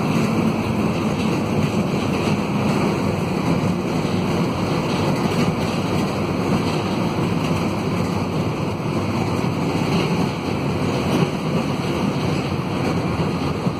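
A diesel minibus engine drones, heard from inside while driving.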